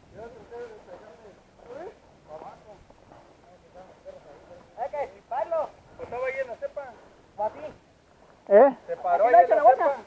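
Men talk outdoors at a distance.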